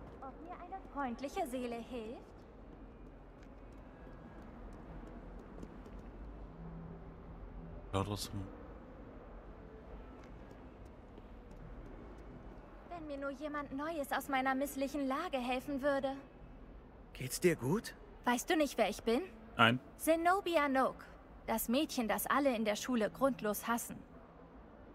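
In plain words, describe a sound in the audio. A young woman speaks with feeling, close by.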